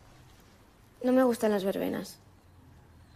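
A girl speaks softly up close.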